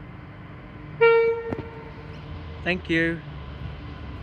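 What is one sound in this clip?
A diesel locomotive sounds its horn in two blasts.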